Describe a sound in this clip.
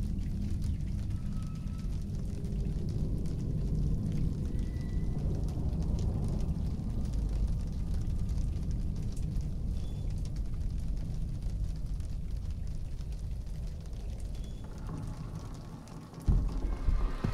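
A television gives off a low, steady droning rumble.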